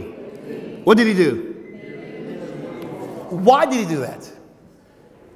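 A man speaks loudly and with animation through a microphone in an echoing hall.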